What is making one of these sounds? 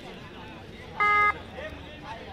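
A referee's whistle blows one short blast.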